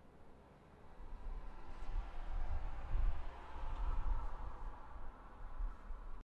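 Wind gusts and rumbles in the open air.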